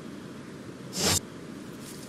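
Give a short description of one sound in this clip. A short menu click sounds as the menu closes.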